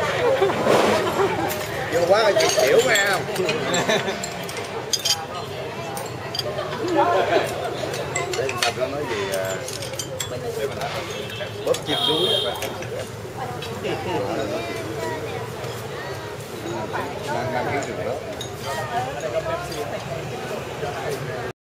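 Dishes and glasses clink now and then.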